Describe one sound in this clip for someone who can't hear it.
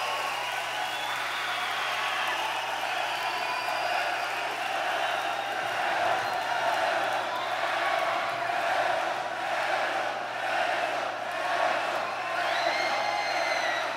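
An electric guitar rings out over the band.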